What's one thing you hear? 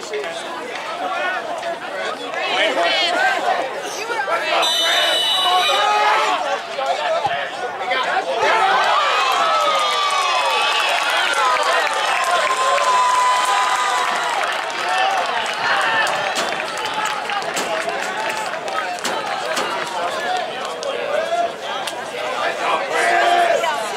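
A crowd of spectators shouts and cheers nearby outdoors.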